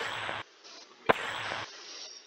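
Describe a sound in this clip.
A short electronic click sounds as a menu selection changes.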